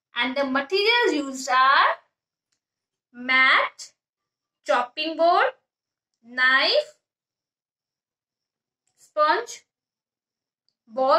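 A young woman speaks calmly and clearly, close by, in short phrases with pauses.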